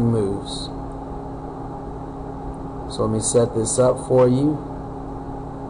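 A man speaks calmly and closely into a microphone, in short bursts.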